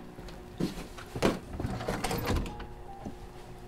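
Clothes hangers rattle and clothes rustle.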